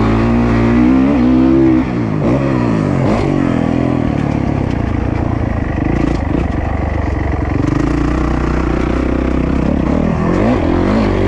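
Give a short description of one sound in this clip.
A dirt bike engine revs loudly up close, rising and falling in pitch.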